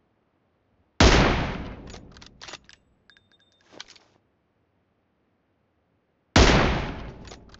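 A sniper rifle fires a loud, sharp shot that echoes away.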